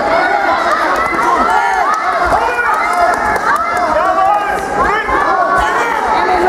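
A crowd of children shouts and cheers loudly in an echoing hall.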